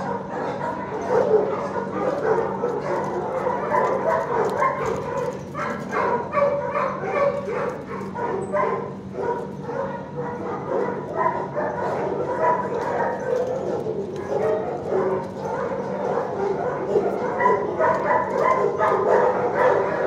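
A dog barks and whines close by in an echoing room.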